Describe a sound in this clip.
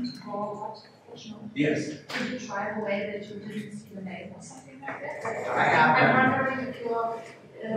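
A man speaks calmly and steadily to a room, his voice echoing slightly.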